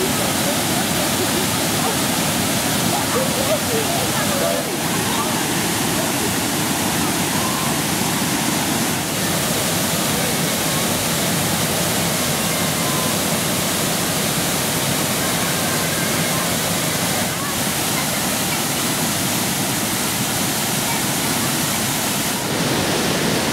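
A waterfall roars loudly close by.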